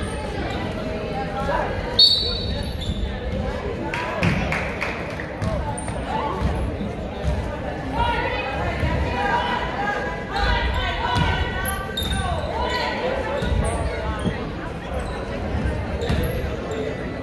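A basketball bounces on a hardwood court in an echoing gym.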